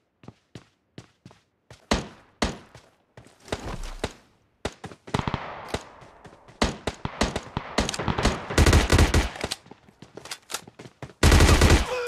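Footsteps run quickly across a hard surface.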